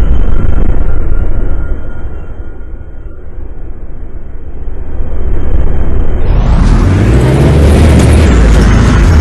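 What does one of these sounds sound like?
A bus engine idles with a deep, steady rumble that grows louder toward the end.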